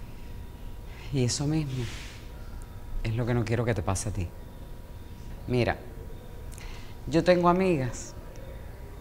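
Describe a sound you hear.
A woman speaks tensely, close by.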